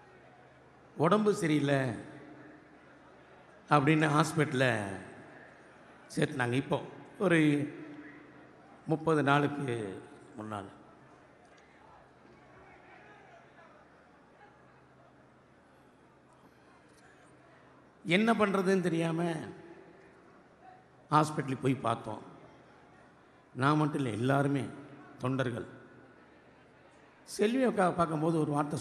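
A middle-aged man shouts forcefully in short bursts through a loudspeaker, with pauses between phrases.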